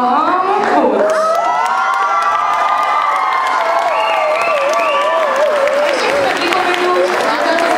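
A man sings long, wavering notes through a microphone.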